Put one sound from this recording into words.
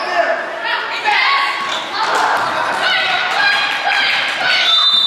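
Young girls shout and call out across a large echoing gym.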